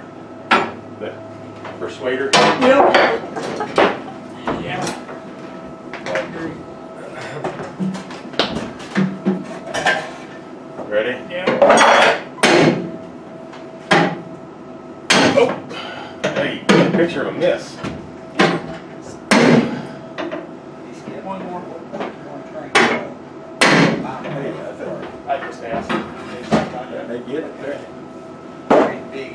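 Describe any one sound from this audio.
Metal tools knock and clank against an aircraft's metal frame inside the fuselage.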